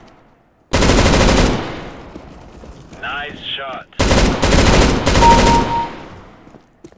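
A machine gun fires rapid bursts that echo off walls.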